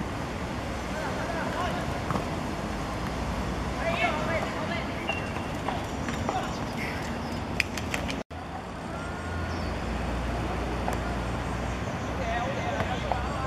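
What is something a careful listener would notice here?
Young boys shout to each other across an open playing field.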